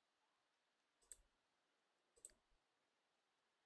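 Soft game interface clicks sound a few times.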